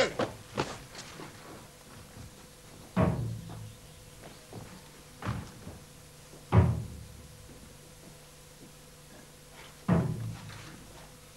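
Fists pound heavily on a large wooden door.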